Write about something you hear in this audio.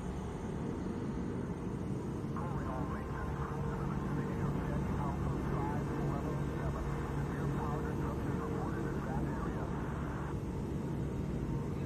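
A spacecraft's engines hum with a low, steady drone.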